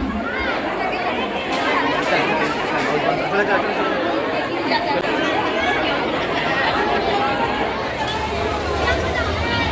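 A crowd of women chatter and call out loudly all around.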